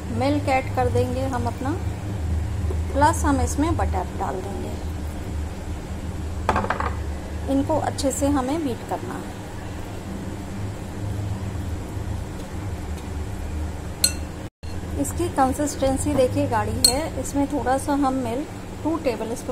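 Milk pours into a bowl.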